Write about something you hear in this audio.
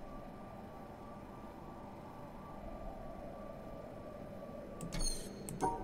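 An electronic puzzle panel hums softly as a line is traced across it.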